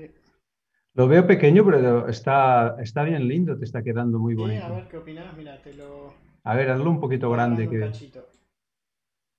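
A second man talks with animation over an online call.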